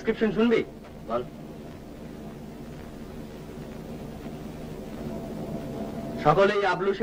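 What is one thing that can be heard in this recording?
A man reads aloud.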